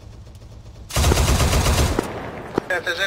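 A heavy machine gun fires a short, loud burst.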